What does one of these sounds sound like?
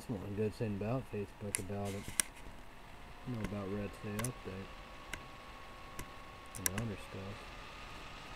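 A young man speaks calmly and close, heard through a computer microphone.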